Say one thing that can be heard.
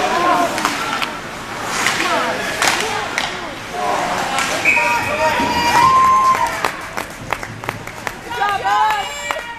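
Young players shout and call out across an echoing ice rink.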